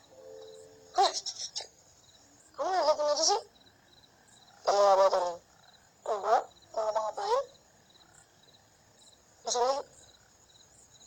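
A young boy speaks with animation close by.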